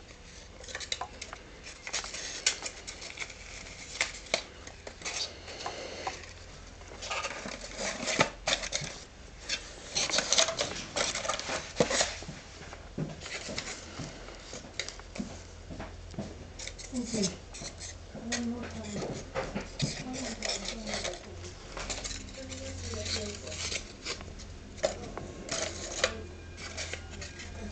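Paper and cardboard rustle and crinkle as hands handle them.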